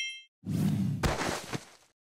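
A fruit drops to the ground with a thud.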